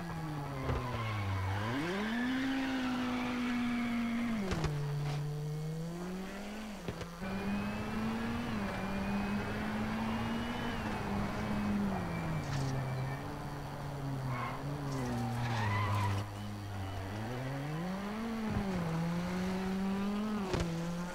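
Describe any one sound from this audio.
A rally car engine revs hard, rising and falling in pitch as it shifts gears.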